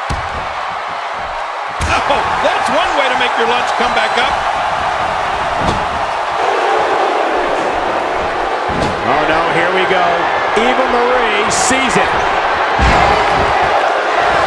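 A large crowd cheers and roars steadily in a big echoing arena.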